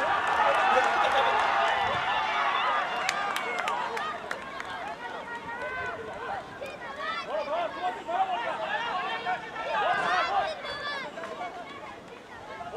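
A crowd of spectators shouts and cheers outdoors from the sidelines.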